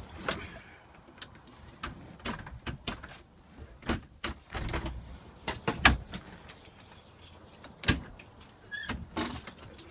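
Footsteps clunk on a bus's metal floor and steps.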